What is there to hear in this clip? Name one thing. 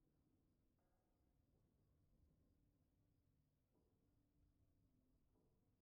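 Soft game music plays with short chiming notes.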